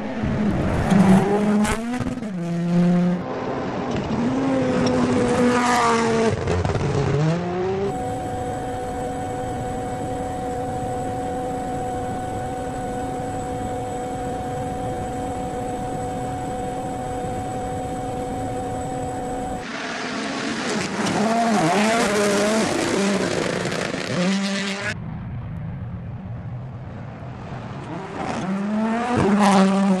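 A rally car engine roars and revs hard as the car speeds past.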